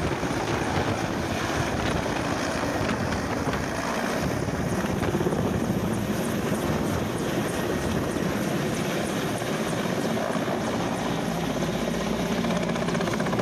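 A helicopter's rotor thumps loudly overhead, close by.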